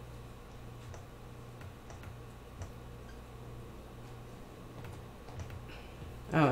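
A computer mouse clicks softly.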